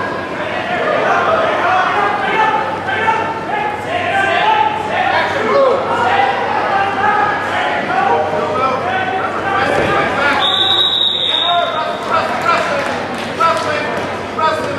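Spectators shout and call out loudly in a large echoing hall.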